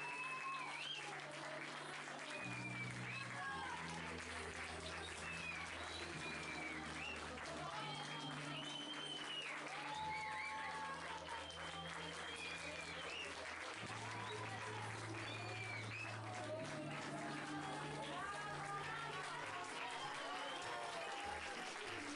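Children clap their hands along.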